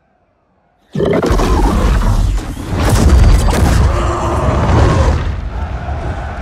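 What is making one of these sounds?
A fireball bursts with a loud roar.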